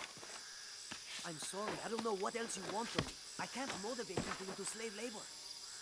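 Hands scrape and grip on rock while climbing.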